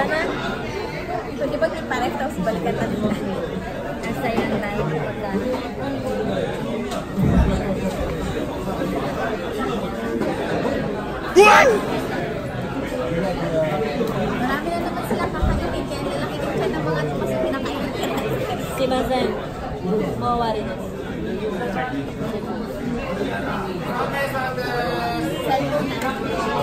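Another young woman talks and laughs close by.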